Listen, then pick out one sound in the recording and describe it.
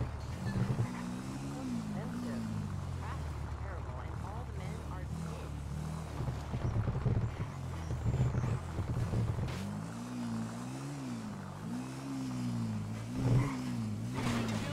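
A motorbike engine hums and revs up and down.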